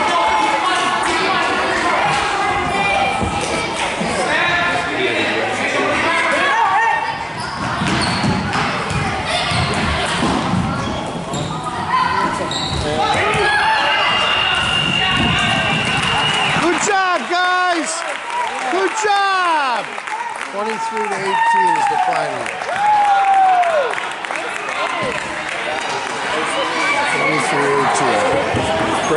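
Children shout and call out across an echoing gym.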